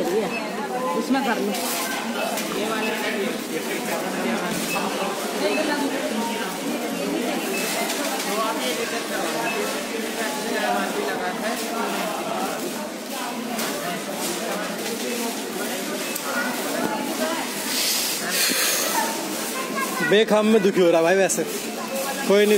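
Several men talk loudly nearby in a busy, echoing indoor space.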